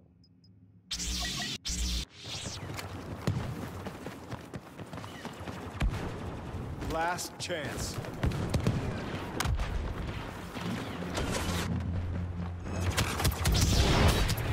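Blaster fire zaps and crackles in a video game battle.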